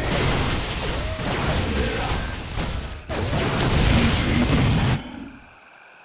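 Gunfire and explosions crackle from a strategy game battle.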